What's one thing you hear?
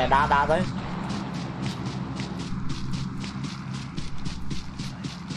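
Footsteps rustle quickly and evenly through grass.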